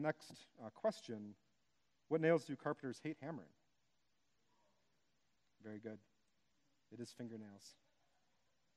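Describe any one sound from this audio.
A man speaks calmly through a microphone in a large hall, in short phrases with pauses.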